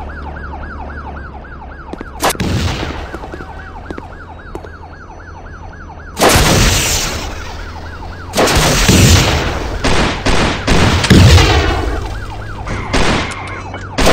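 A siren wails nearby.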